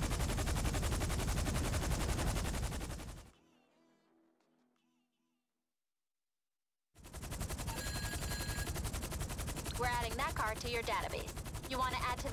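A helicopter's rotor thumps loudly and steadily overhead.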